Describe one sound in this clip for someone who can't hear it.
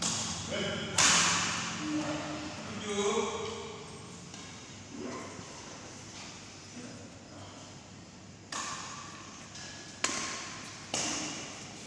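Badminton rackets smack a shuttlecock back and forth, ringing in a large echoing hall.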